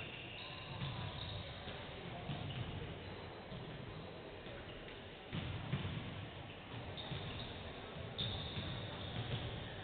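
Basketballs bounce on a hardwood floor in a large echoing hall.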